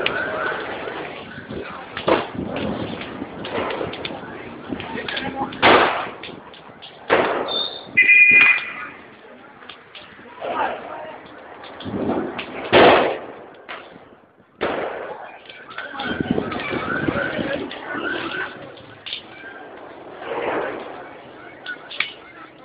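A large fire roars and crackles close by.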